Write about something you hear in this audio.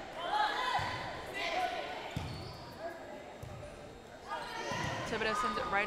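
Young players shout and call out to each other in an echoing gym.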